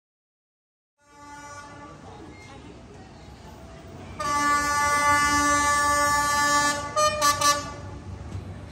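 A train horn blares in long, steady blasts.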